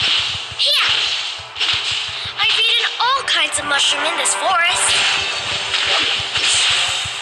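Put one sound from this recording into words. Fantasy battle sound effects clash, zap and whoosh in quick bursts.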